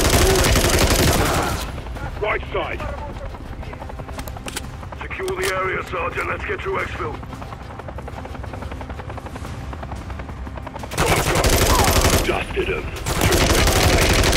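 A rifle fires rapid bursts of loud, sharp shots close by.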